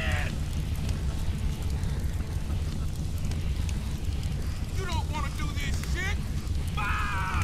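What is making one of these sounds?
A large fire roars and crackles steadily.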